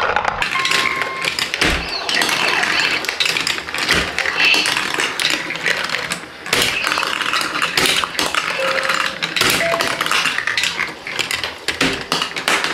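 Plastic marbles rattle and clatter down plastic tracks.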